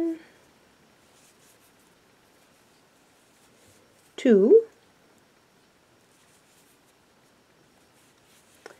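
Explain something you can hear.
A crochet hook softly rustles through yarn.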